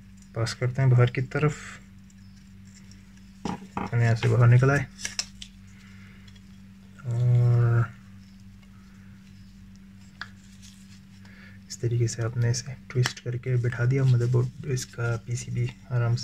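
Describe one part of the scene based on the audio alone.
Plastic fan parts click and rattle as they are handled.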